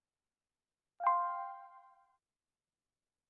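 A computer alert chime rings once and fades.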